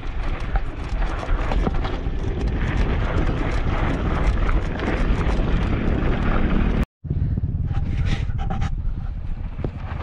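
Bicycle tyres crunch and rattle over a rough dirt track.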